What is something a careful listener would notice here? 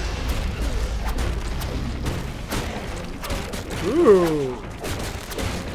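Blows land with heavy thuds and crunches in a fight.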